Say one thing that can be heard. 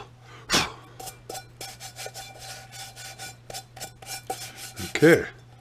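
Hands rub and tap the outside of a small metal pot.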